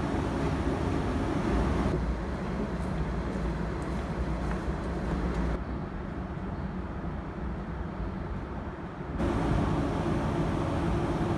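A train rumbles and rattles steadily as it rolls past close by.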